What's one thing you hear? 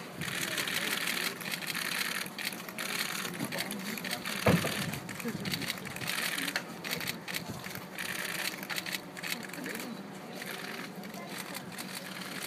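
A crowd of people chatters and murmurs close by outdoors.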